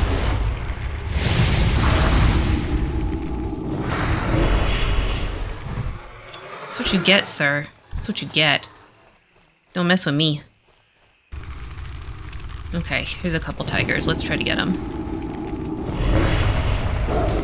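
Game spell and combat sound effects whoosh and clash.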